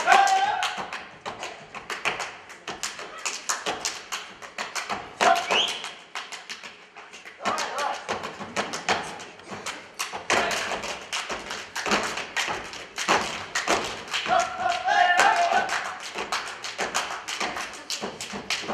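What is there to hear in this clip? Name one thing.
Boots stamp rapidly on a wooden stage.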